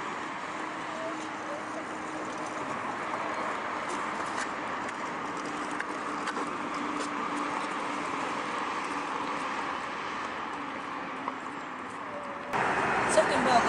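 A small car drives slowly past on a road.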